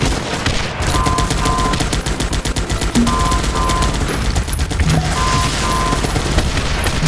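A warning alarm beeps in short double bursts.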